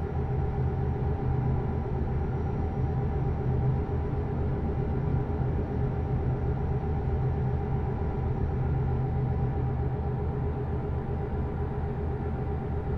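A truck engine hums low and steady while cruising.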